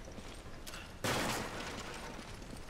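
A wooden crate splinters and breaks apart.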